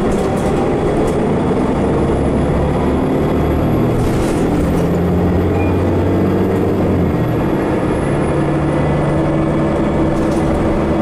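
Bus tyres rumble on the road.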